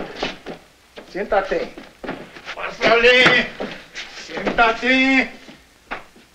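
A man speaks loudly and with strong emotion, close by.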